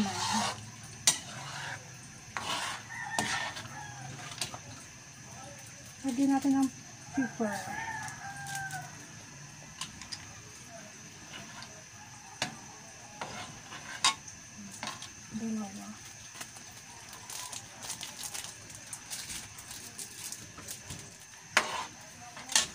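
A metal ladle scrapes and clinks against a wok.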